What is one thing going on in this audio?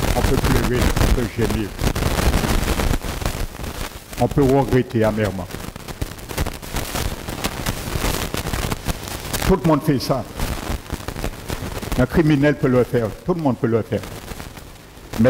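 A middle-aged man speaks calmly into a headset microphone, heard through a loudspeaker.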